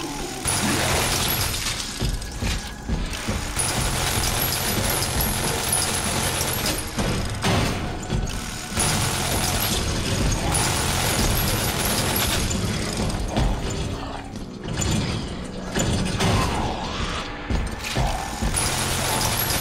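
A gun fires loud shots in bursts.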